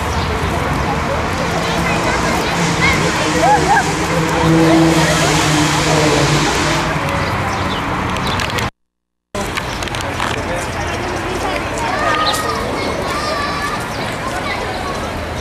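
A crowd of people chatters outdoors in the open.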